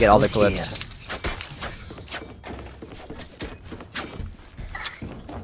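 A young man talks close to a microphone with animation.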